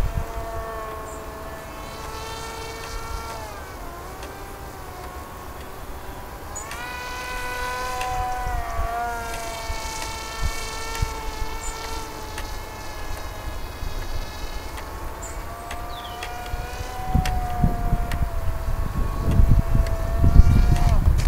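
A model plane's electric motor whines overhead, its pitch rising and falling as it flies.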